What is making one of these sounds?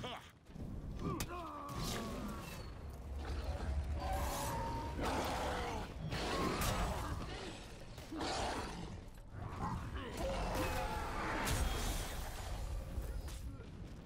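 Heavy thuds and rumbles boom during the fight.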